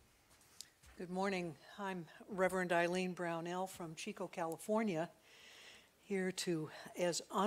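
An older woman speaks steadily into a microphone in an echoing hall.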